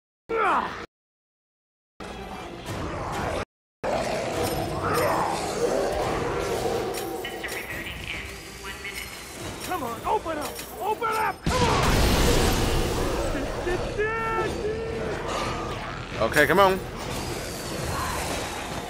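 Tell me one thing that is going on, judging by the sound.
Gunfire and explosions from a video game crash and bang.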